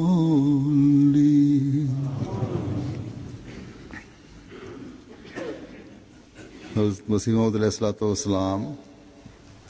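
A man chants in long, drawn-out tones through a microphone, echoing in a large hall.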